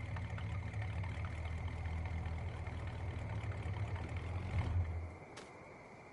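A vehicle engine idles with a low, steady rumble, then cuts out.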